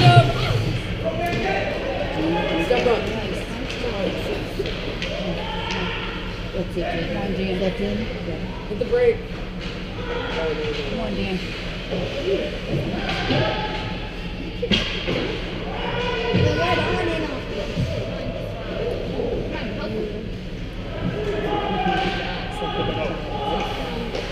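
Young players call out to each other in a large echoing rink.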